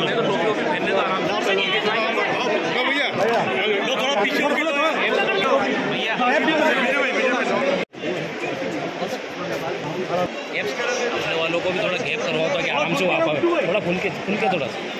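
A dense crowd of men and women chatters and calls out all around, close by.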